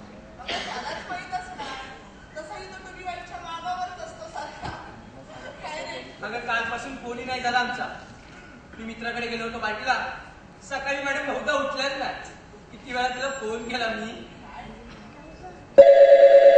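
A young man reads aloud with expression in a hall.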